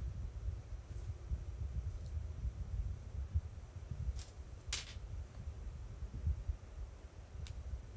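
A phone rustles and thumps softly as a hand handles it close by.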